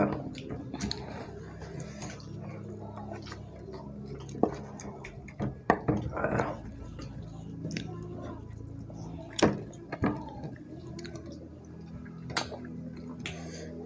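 Fingers tap and scrape on plates.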